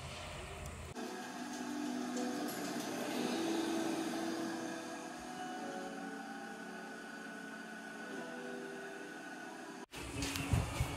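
An electric kettle hums and hisses as it heats water.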